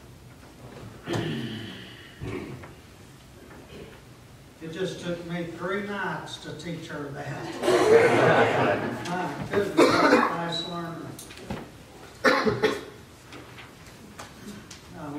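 A man speaks calmly through a microphone, in a room with a slight echo.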